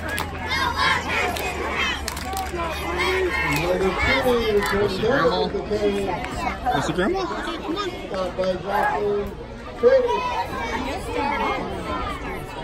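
Men on the sideline shout and call out nearby.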